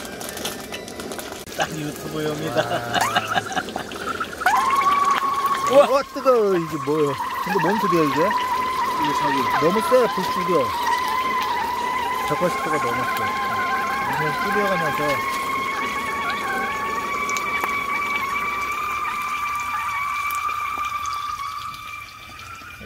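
Hot oil sizzles steadily as food deep-fries.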